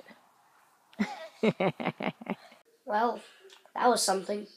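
A child talks close up, with animation.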